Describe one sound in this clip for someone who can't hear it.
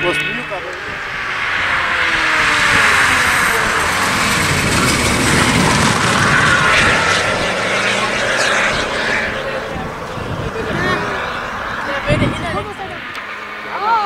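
Another rally car engine roars past loudly and fades into the distance.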